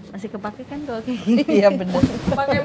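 A woman talks and laughs excitedly close by.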